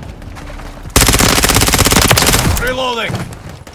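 A rifle fires a rapid, loud burst.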